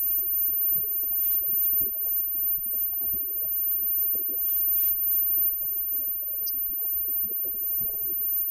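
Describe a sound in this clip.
A live rock band plays loudly through amplifiers.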